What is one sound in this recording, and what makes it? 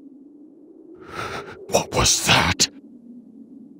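A man asks a startled question.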